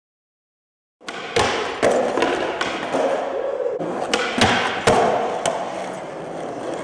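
Skateboard wheels roll and rumble on a smooth concrete floor in a large echoing hall.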